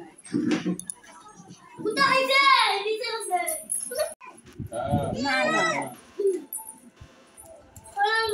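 Young children squeal and shout playfully close by.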